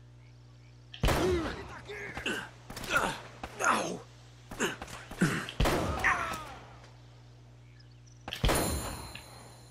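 A pistol fires several shots that echo loudly.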